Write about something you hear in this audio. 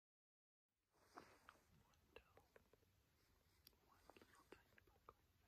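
A young man whispers very close by.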